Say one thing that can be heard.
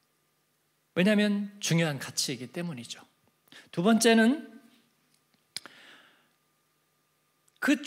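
A middle-aged man speaks with feeling into a microphone.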